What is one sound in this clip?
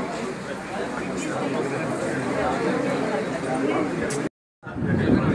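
A crowd of men talk over one another close by.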